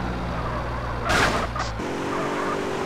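Car tyres screech in a skid.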